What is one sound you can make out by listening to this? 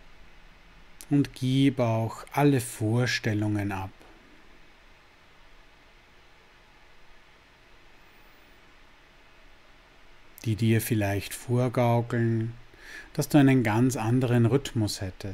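A middle-aged man speaks calmly, close to a microphone, with long pauses.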